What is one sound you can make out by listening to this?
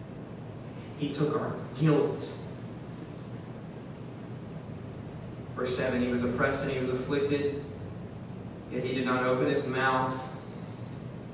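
A young man speaks calmly and slowly through a microphone, with pauses.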